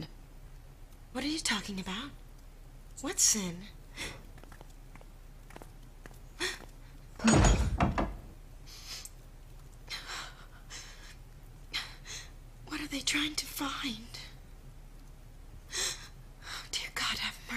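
A woman sobs and whimpers softly.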